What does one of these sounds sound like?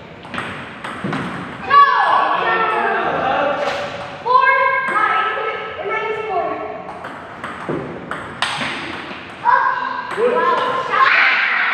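A ping-pong ball clicks back and forth between paddles and table in an echoing hall.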